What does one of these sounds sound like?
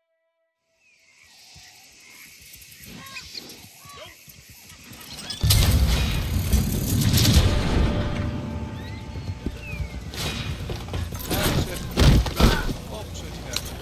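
A wagon rolls over grass.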